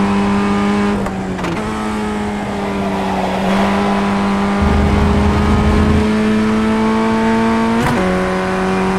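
A racing car engine briefly drops in pitch as gears shift.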